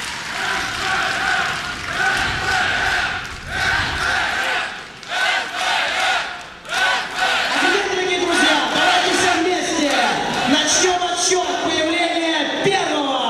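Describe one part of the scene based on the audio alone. A crowd cheers and chants loudly in a large echoing hall.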